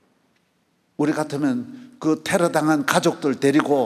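A middle-aged man speaks with animation into a handheld microphone in a large echoing hall.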